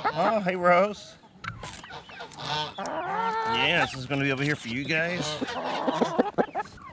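Hens cluck outdoors.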